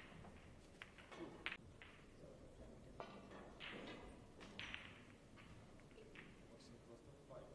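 Snooker balls clack together on the table.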